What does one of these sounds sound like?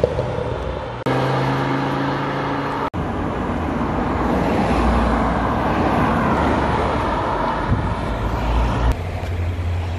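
A sports car engine revs loudly and roars past close by.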